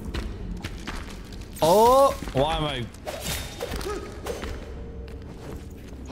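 A sword clangs against a creature in a game.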